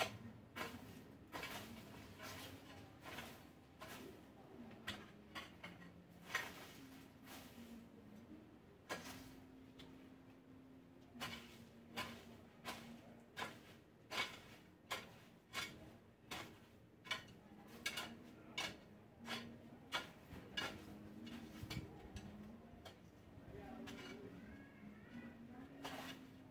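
A rake scrapes and rustles through dry leaves and weeds in quick strokes.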